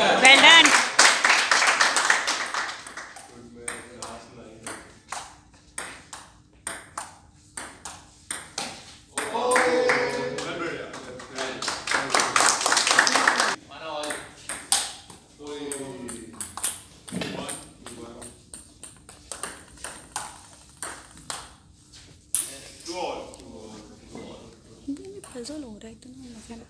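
A table tennis ball clicks back and forth between paddles and table.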